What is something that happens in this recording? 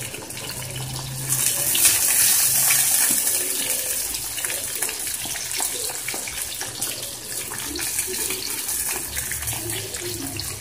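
Oil sizzles and crackles loudly as food fries in a pan.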